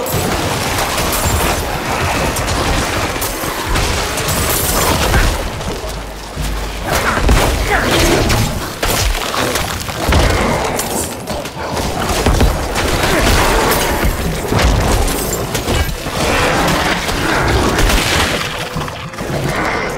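Explosions and spell blasts burst loudly again and again.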